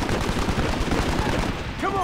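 A rifle shot cracks in the distance.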